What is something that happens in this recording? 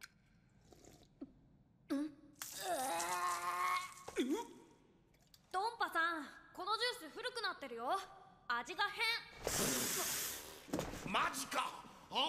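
A young woman speaks quietly close to a microphone.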